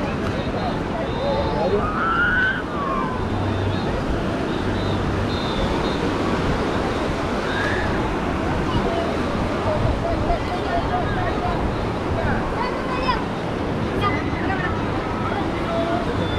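Many people chatter and shout on a busy beach.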